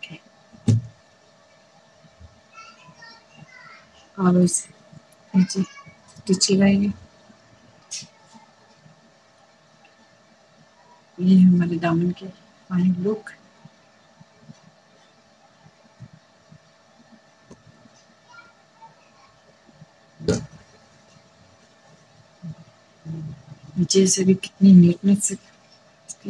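Cloth rustles softly as hands handle and fold it.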